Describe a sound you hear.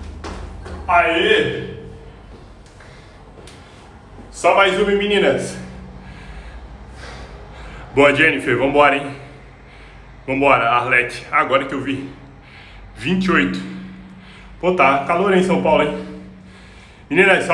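A young man speaks close by, out of breath.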